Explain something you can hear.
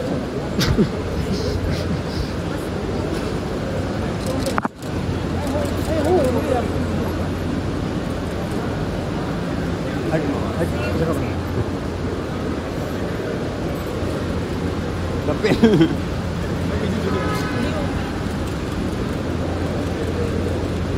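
A crowd of people chatters in a busy echoing hall.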